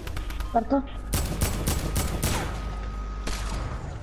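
A gun fires a quick burst of shots.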